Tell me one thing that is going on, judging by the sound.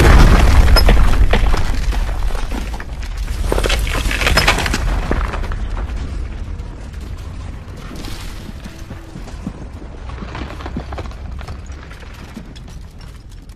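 A low rumble roars and slowly fades.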